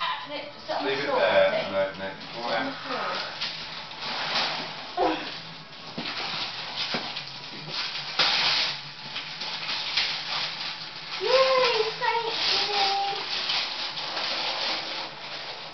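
Wrapping paper rustles and tears.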